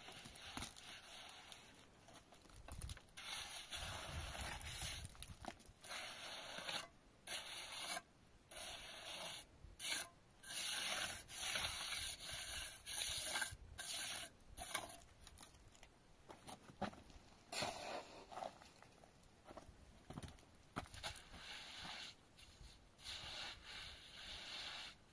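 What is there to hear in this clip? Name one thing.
A trowel scrapes and smooths wet mortar.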